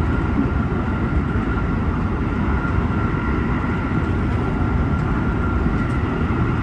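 A steady high whine hums inside the train cab.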